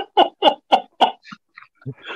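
A man laughs in short bursts over an online call.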